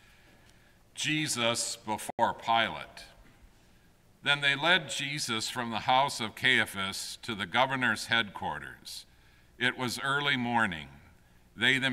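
An elderly man reads aloud calmly through a microphone.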